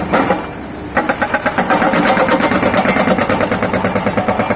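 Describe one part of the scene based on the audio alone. A hydraulic breaker hammers rapidly on rock.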